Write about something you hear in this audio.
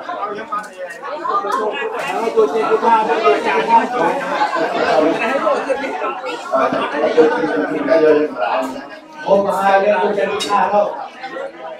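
Several men chant together in a steady, droning voice nearby.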